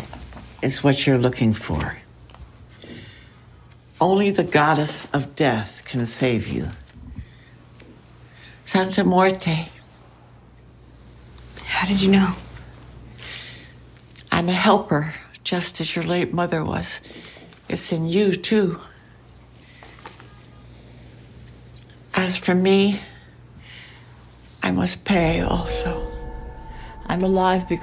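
A younger woman speaks briefly, close by.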